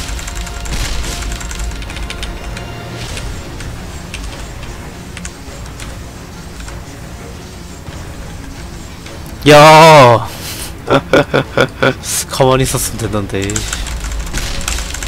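Video game sound effects crackle and chime.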